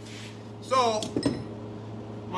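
Sheet metal clanks.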